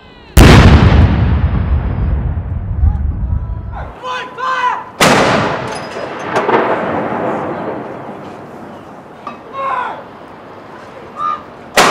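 A field gun fires a salute with a loud boom that echoes across the city.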